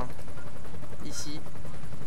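A helicopter's rotor drones overhead.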